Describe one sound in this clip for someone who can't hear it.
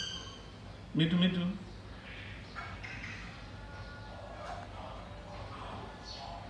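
Parrots chatter and squawk softly.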